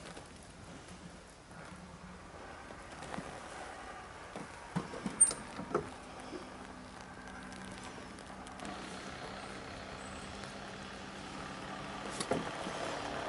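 Light rain patters on a pond's surface.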